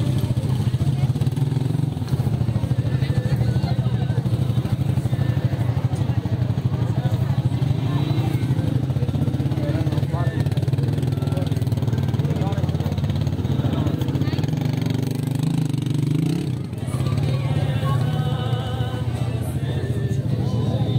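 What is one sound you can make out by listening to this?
A crowd murmurs and chatters all around outdoors.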